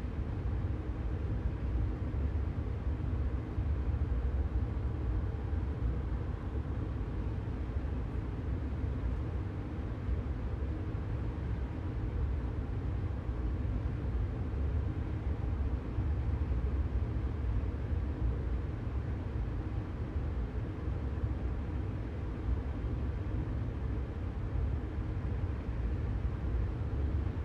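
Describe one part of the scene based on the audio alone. A train's electric motors hum steadily as it runs along the rails.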